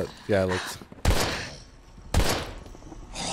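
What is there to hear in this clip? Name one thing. A shotgun fires two loud blasts.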